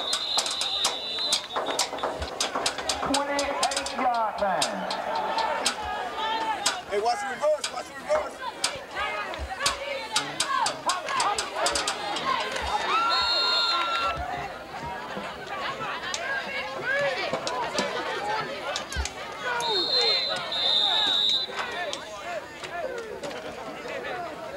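Football players' pads clash as they collide.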